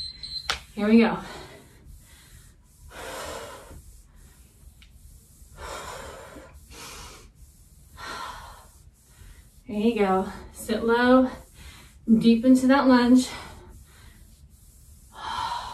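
Feet shuffle and thump on a carpeted floor.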